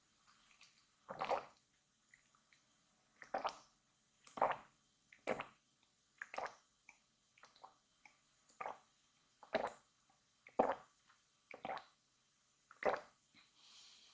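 A woman gulps water in loud swallows, close up.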